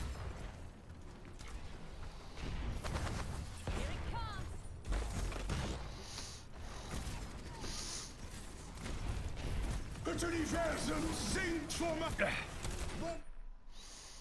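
Blasts and impacts crackle and boom.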